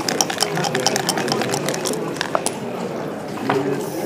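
Dice rattle and tumble onto a board.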